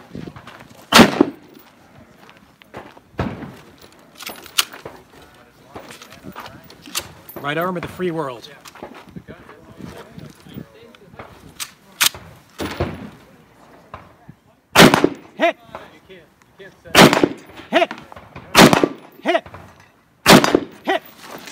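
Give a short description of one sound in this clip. Rifle shots crack one at a time outdoors, echoing across open ground.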